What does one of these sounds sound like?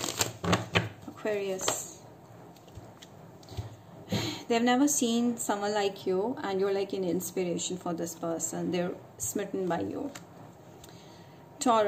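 Playing cards slide and tap softly onto a pile of cards.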